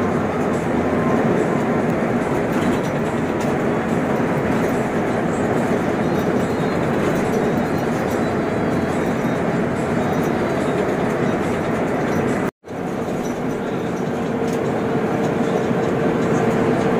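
A vehicle's engine hums steadily from inside the cab.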